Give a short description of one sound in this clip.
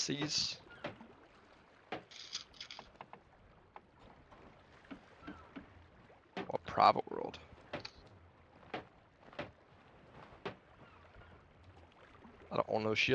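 A man speaks in short bursts, close to a microphone.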